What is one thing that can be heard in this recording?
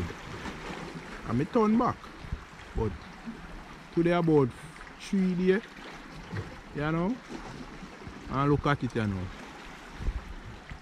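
Small waves lap gently against rocks.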